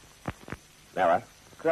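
A man speaks briefly in a firm voice.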